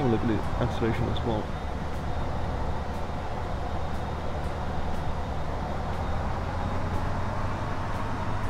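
A heavy truck engine rumbles steadily as the truck drives along.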